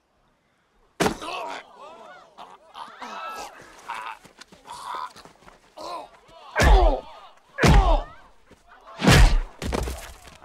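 Punches land with loud thumps.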